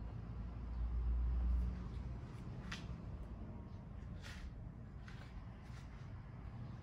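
A hard plastic panel clicks and knocks as it is lifted.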